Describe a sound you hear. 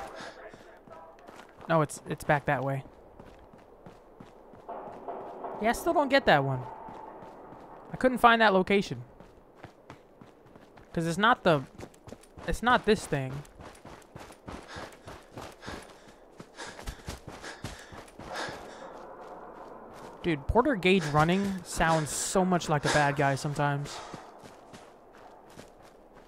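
Footsteps crunch on dry ground and gravel.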